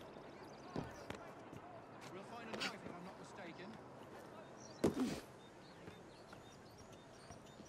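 Boots scuff and patter across roof tiles.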